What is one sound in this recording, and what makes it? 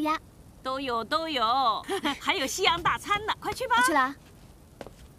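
A middle-aged woman speaks warmly and cheerfully nearby.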